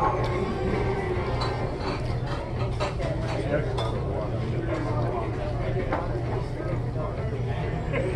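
A knife and fork scrape and clink against a plate.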